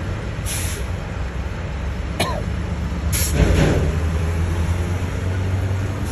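A truck drives past.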